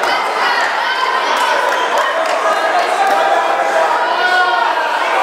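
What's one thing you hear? A crowd of people chatters and shouts in a large echoing hall.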